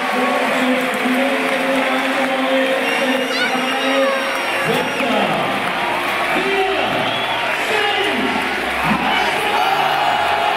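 Men nearby shout and cheer.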